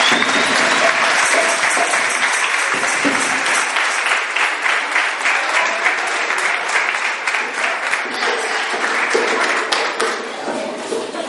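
A crowd claps and cheers loudly in an echoing hall.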